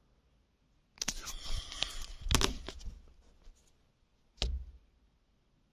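Fabric rustles and bumps right against a microphone.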